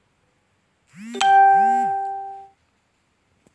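A phone notification chime rings out once.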